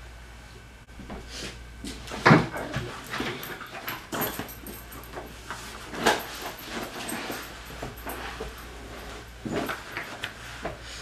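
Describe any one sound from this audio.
Fabric rustles as clothing is handled.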